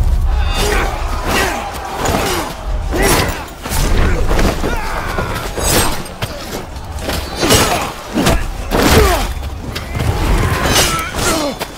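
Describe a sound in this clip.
Swords clash and ring with metallic clangs.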